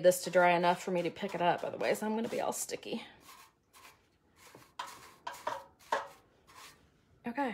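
A paintbrush swishes in short strokes against a metal can.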